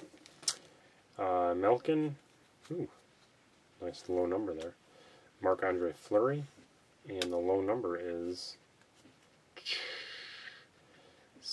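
Trading cards slide against each other as they are shuffled.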